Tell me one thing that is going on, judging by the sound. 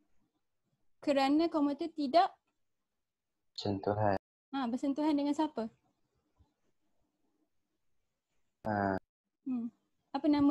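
A young woman speaks calmly into a microphone, in short phrases with pauses.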